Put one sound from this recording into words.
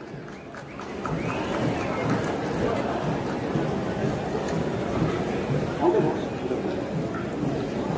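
A large crowd murmurs and chatters.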